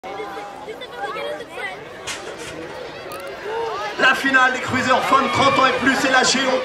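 A crowd of spectators shouts and cheers outdoors, growing louder.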